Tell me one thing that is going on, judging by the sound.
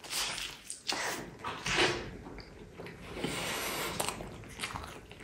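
A young man chews crispy food loudly and close up.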